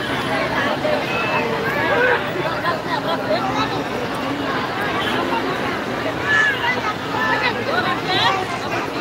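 Firecrackers crackle and pop.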